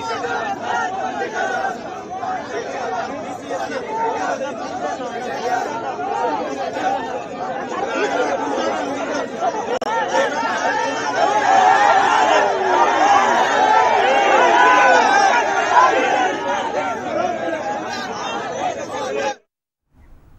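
A crowd of men talks and shouts outdoors.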